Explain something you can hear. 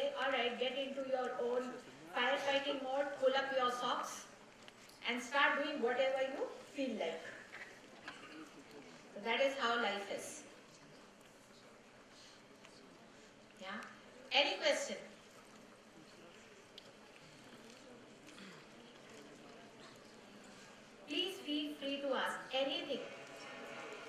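A woman speaks with feeling into a microphone, in a large echoing hall.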